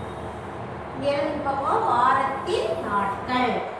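A woman speaks clearly nearby.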